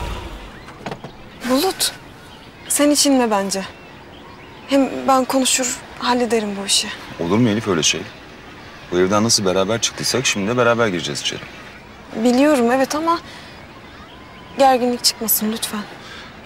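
A young woman speaks calmly and quietly up close.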